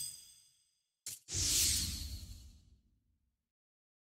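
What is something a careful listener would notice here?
A loud whoosh sweeps past with a deep rumble, then fades away.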